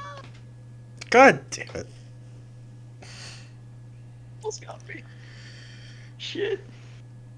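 A young man laughs over an online call.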